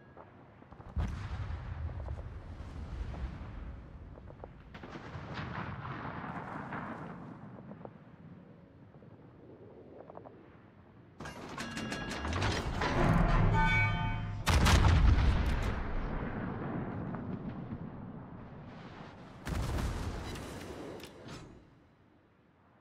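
Heavy naval guns fire with deep, rumbling booms that roll away slowly.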